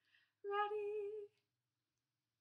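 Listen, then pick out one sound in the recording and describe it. A plush toy plays a short warbling tone.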